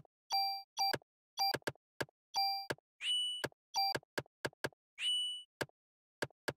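Short electronic menu beeps and chimes sound again and again.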